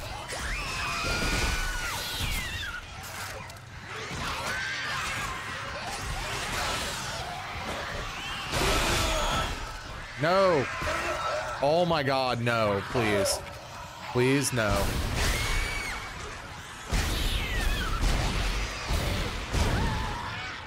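Energy weapon shots fire in sharp bursts.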